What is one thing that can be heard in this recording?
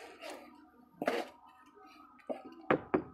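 Wet cement thuds as it is tamped into a mould.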